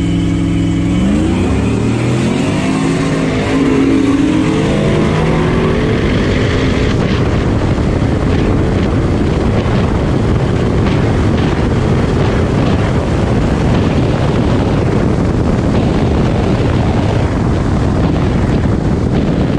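A car engine roars as the car launches and speeds up hard.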